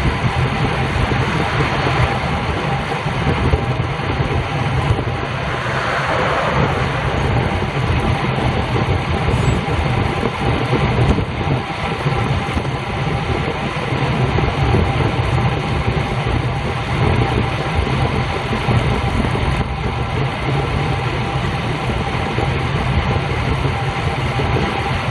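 Wind rushes steadily past while riding a bicycle outdoors.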